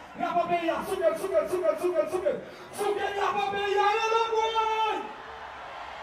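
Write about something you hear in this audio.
A man shouts with excitement through a microphone and loudspeakers.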